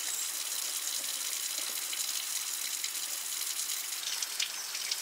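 A knife scrapes scales off a fish.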